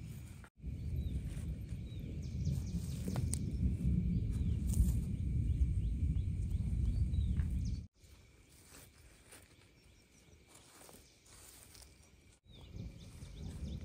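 Clumps of earth patter softly as a hand scatters them.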